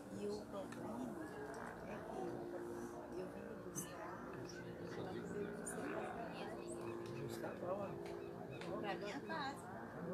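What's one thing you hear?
Several women talk together nearby.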